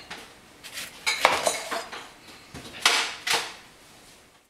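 A knife slices through a lemon on a cutting board.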